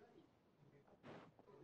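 Water splashes in a short burst.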